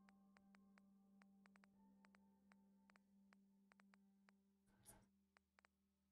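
Soft electronic clicks tick rapidly, one after another.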